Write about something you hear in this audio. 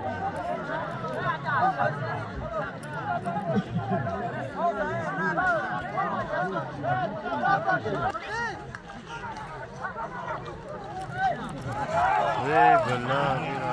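A large crowd of men shouts and cheers outdoors.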